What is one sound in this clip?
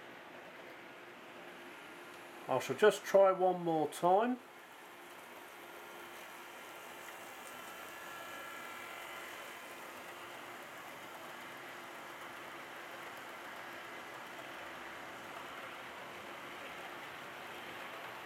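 A model train rolls along its track with a soft, steady rumble.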